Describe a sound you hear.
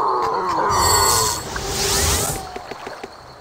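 A magic bolt crackles and zaps.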